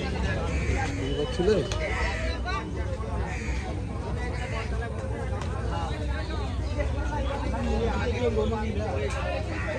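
Men talk in a crowd nearby.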